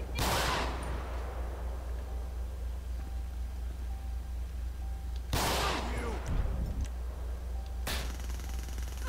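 Pistol shots ring out and echo.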